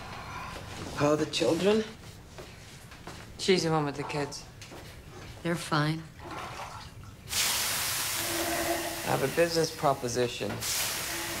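A woman speaks calmly and quietly.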